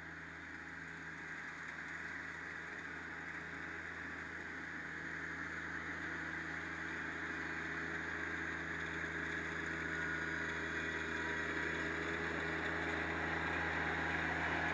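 A small tractor engine hums steadily and grows louder as it approaches.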